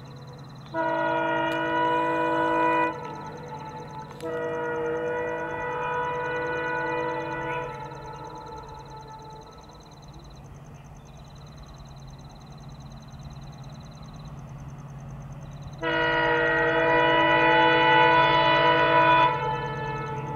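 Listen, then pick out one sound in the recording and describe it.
A train horn blares loudly in long blasts.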